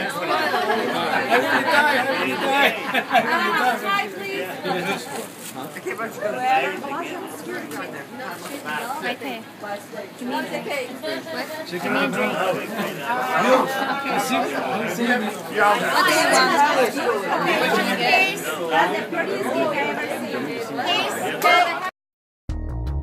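A crowd of adults chatters and laughs close by.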